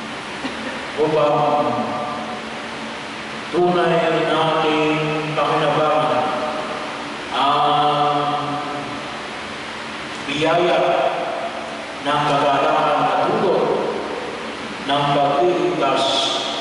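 An elderly man chants into a microphone in an echoing hall.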